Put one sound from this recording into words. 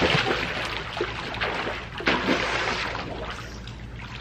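Water splashes as swimmers move through a pool.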